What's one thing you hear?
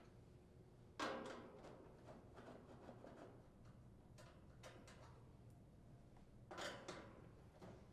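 A screwdriver turns screws in sheet metal with faint scraping and clicks.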